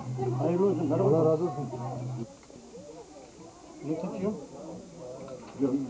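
Men talk nearby in a lively, overlapping way.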